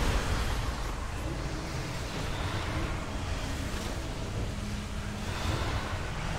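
Magic spells whoosh and crackle in a busy battle.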